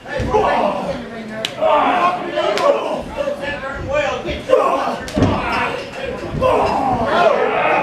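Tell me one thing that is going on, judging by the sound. A crowd of people shouts and cheers loudly close by.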